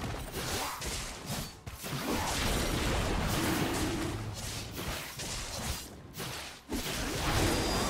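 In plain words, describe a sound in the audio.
Magic blasts whoosh and clash in a game fight.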